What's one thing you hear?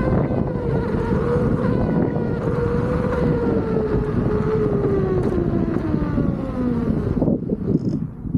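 An electric motor whines and slowly drops in pitch.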